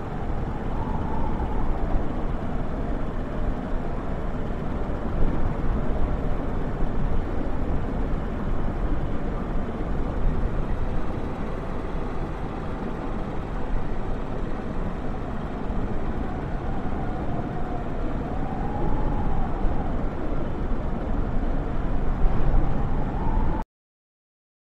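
An aircraft engine hums steadily at idle.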